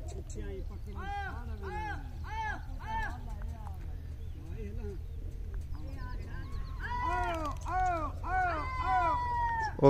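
A flock of birds calls repeatedly with short rising and falling cries.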